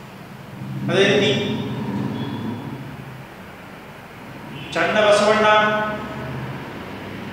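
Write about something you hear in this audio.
A young man speaks with animation, close by, in a room with some echo.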